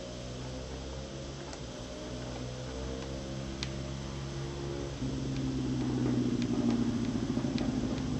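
A motorcycle engine revs high and changes pitch as it accelerates through gears.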